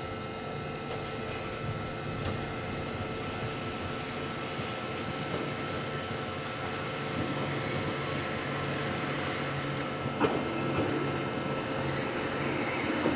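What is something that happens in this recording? A train approaches and rumbles closer, growing louder.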